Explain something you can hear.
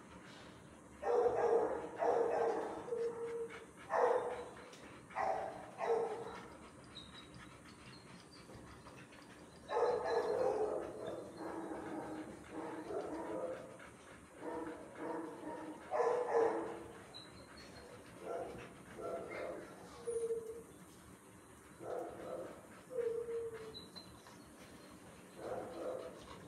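A dog whines and yelps in short bursts.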